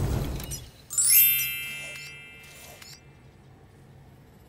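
A menu chimes with short electronic tones.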